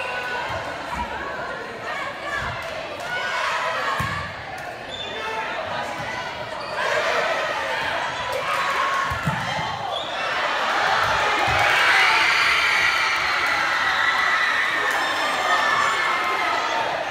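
A large crowd of young people chatters and cheers in a big echoing gym.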